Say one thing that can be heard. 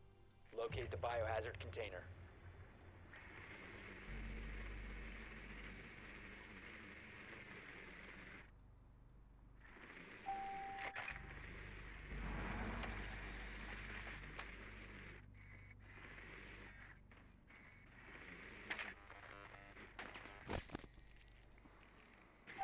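A small remote-controlled drone whirs as it rolls across a floor.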